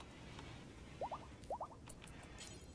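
Short electronic blips chime quickly in pairs.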